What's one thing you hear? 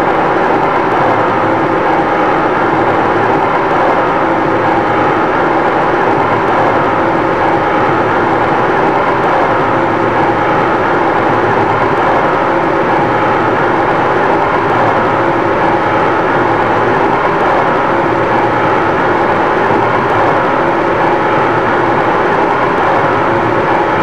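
A train rumbles steadily at high speed through a tunnel.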